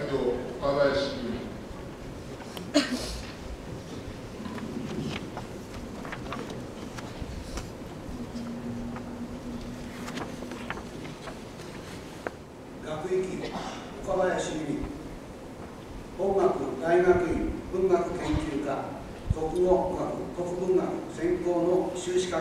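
An elderly man speaks calmly into a microphone, heard over loudspeakers in an echoing hall.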